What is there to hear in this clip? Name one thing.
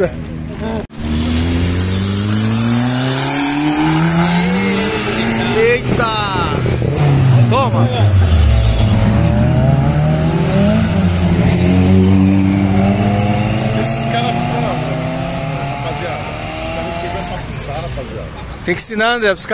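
Car engines rev loudly and roar past close by.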